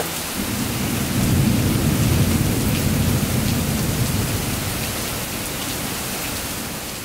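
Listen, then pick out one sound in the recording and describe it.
Hail patters steadily on grass and pavement outdoors.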